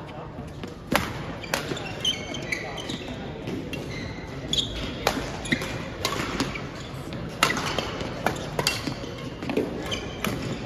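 Badminton rackets smack a shuttlecock in quick rallies.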